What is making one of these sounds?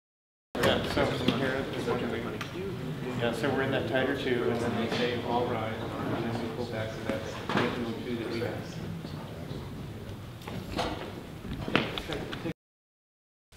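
A crowd of men and women chatters.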